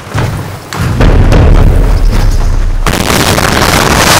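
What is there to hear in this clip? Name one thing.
A magic blast booms.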